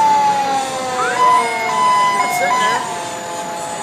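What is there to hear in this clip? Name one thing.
A fire engine's siren gives short whoops and blasts.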